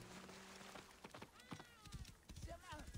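Horse hooves thud on dry ground.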